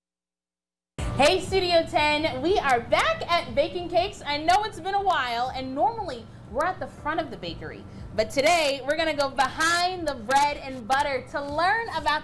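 A woman laughs loudly.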